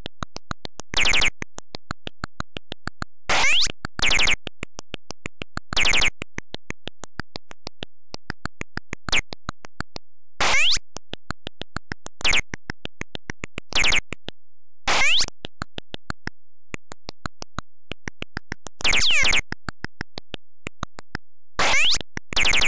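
Short harsh electronic bursts sound again and again in a video game.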